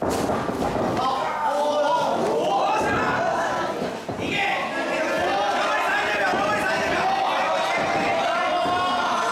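A crowd cheers and shouts in an echoing hall.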